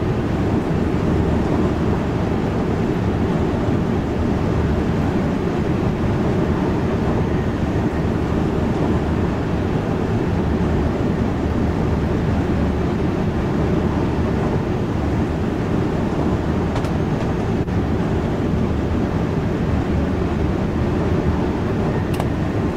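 A train rumbles steadily along the rails at high speed.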